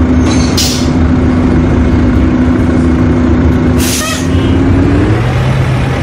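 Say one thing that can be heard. A bus engine idles with a low steady hum.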